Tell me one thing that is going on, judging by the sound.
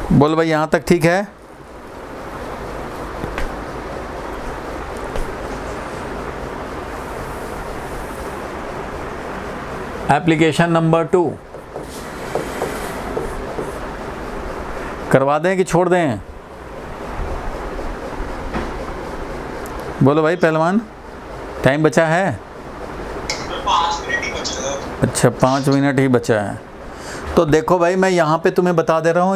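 A man speaks in short bursts, explaining clearly into a close microphone.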